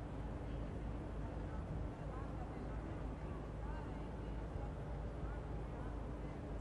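A crowd murmurs faintly outdoors.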